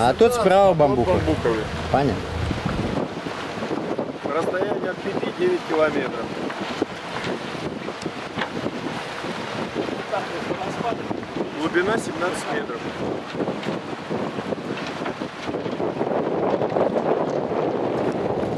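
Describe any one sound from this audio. Water washes against the hull of a moving boat.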